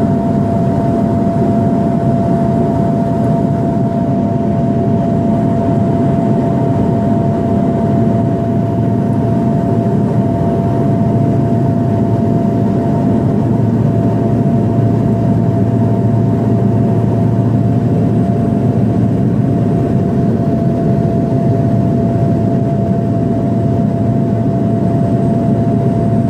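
A propeller engine drones loudly and steadily, heard from inside a small plane.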